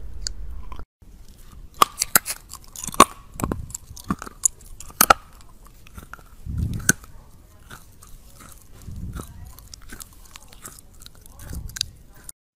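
Teeth bite and chew on a hard plastic cable with small clicks.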